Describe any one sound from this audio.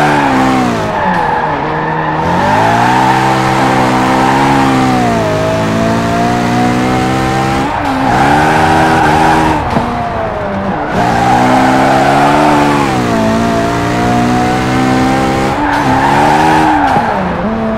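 A sports car engine revs high, rising and dropping in pitch as it shifts gears.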